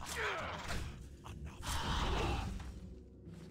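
A winged creature shrieks in pain.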